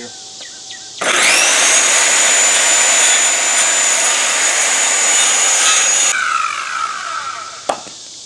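A circular saw whines loudly as it cuts through wood, then winds down.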